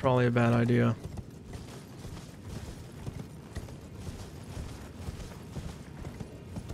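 A horse's hooves thud quickly on grass and stone.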